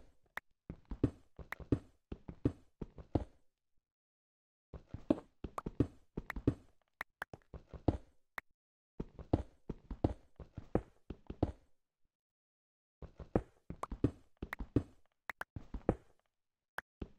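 A pickaxe chips rapidly at stone in quick tapping bursts.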